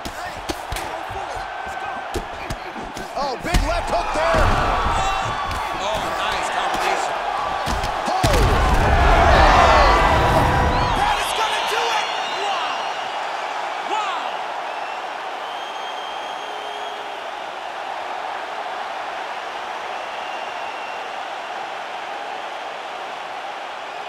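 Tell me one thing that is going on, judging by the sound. A large crowd cheers and roars loudly, then settles to a murmur.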